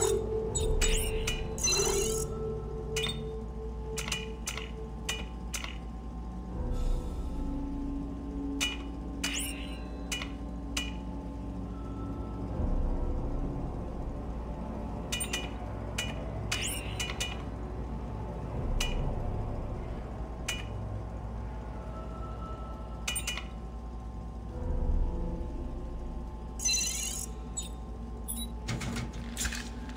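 Short electronic clicks and chimes sound as menu selections change.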